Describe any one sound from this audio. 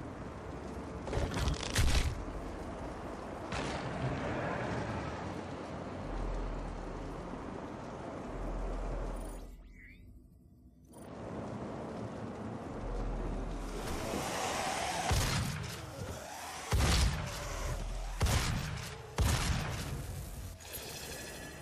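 Game gunfire blasts in rapid bursts.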